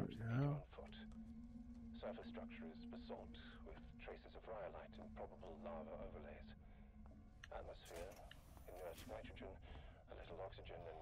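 A man speaks calmly and steadily into a microphone, heard up close.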